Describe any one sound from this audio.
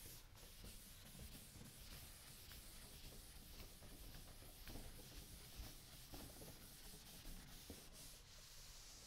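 A sponge wipes across a chalkboard with a soft scrubbing sound.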